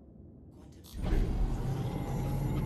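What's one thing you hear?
A spaceship lands with a sudden heavy thud.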